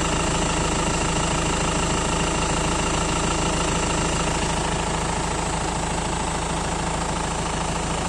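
A four-cylinder diesel car engine idles close by.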